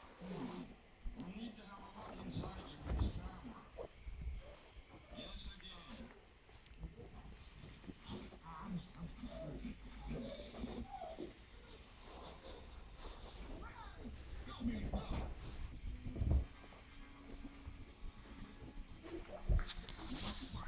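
A puppy's claws patter on a tile floor.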